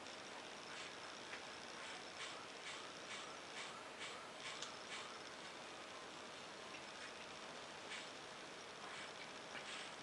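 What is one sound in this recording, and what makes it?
Small plastic and metal parts click and scrape softly.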